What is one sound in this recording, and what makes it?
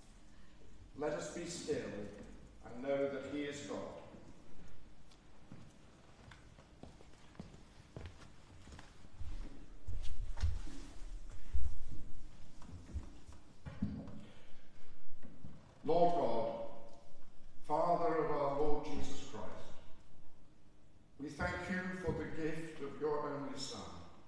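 A woman reads out calmly in a large echoing hall.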